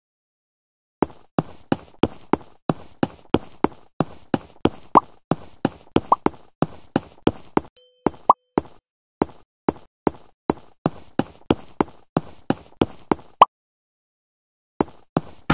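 Cartoon guns fire in quick repeated shots.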